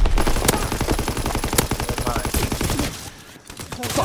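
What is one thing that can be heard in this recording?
Rapid gunfire rattles in a fast burst.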